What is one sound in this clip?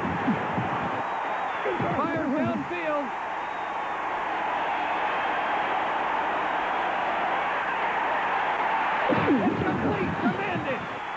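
A large stadium crowd roars.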